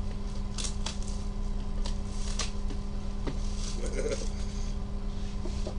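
Plastic shrink wrap crinkles and rustles.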